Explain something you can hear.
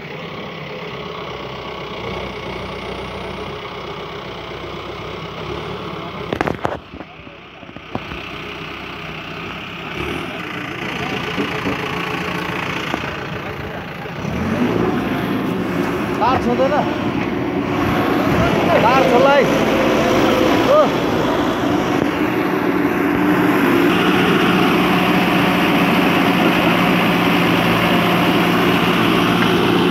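A backhoe's diesel engine rumbles steadily close by.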